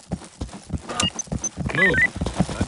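A short electronic beep sounds twice.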